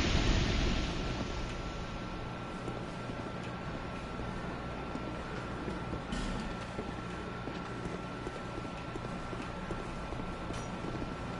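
Armored footsteps clatter on stone.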